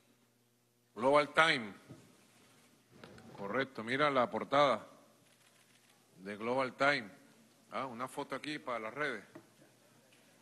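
A man speaks in bursts through a microphone, with pauses between phrases.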